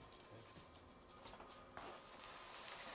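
Bubble wrap crackles.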